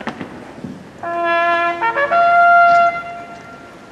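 A trumpet plays a short bugle call outdoors.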